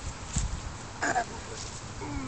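A young boy speaks briefly close by.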